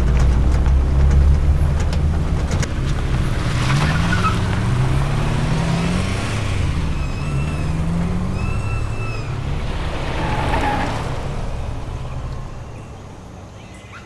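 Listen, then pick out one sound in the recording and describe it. A vehicle engine rumbles along a dirt track and slowly fades away.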